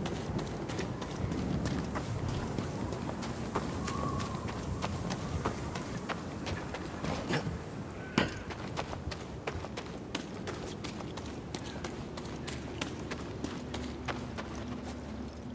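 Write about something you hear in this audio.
Footsteps crunch quickly on rocky ground.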